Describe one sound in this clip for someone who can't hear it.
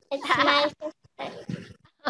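A young girl speaks softly over an online call.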